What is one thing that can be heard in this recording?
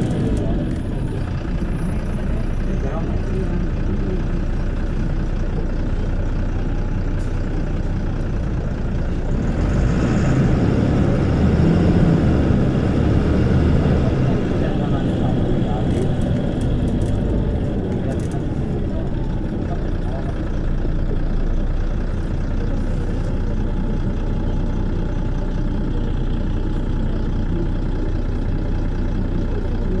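A bus engine idles nearby with a steady low rumble.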